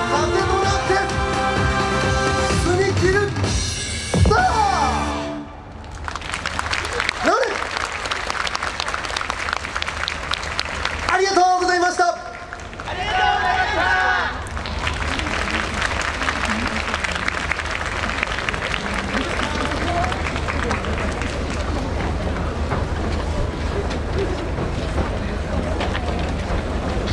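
Loud festival music with a driving beat plays over loudspeakers outdoors.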